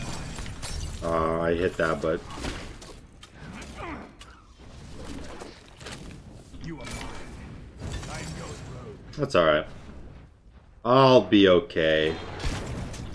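A young man talks close to a headset microphone.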